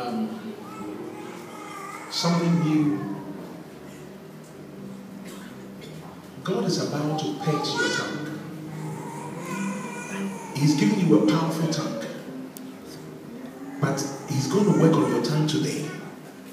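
A man speaks loudly and with animation through a microphone in an echoing hall.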